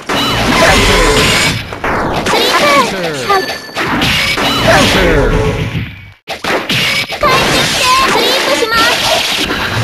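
Fighters' blows land with sharp hits and whooshing swings.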